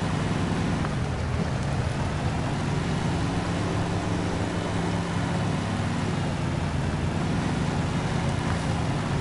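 A truck engine drones steadily as it drives.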